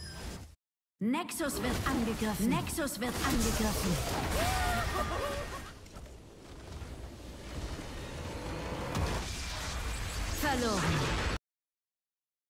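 Dramatic game music swells and then stops abruptly.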